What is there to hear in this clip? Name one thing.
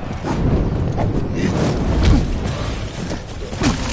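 A fiery blast bursts with a whooshing roar.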